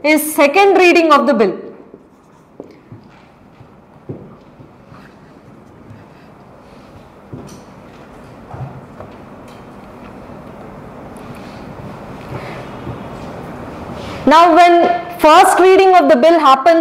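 A young woman speaks calmly into a microphone, lecturing.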